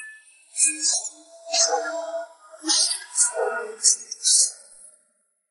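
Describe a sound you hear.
Sharp blows and sword clashes land in quick bursts.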